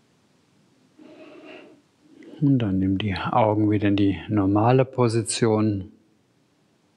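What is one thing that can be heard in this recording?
A man chants in a deep, steady voice in a large room.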